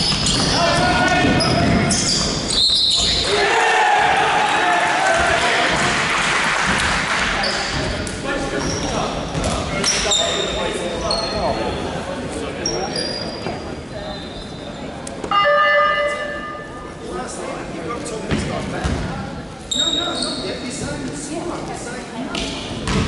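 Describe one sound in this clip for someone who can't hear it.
Sneakers squeak sharply on a hard court, echoing through a large hall.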